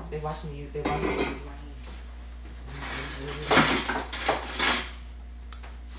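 A spoon scrapes and clinks against a metal pot.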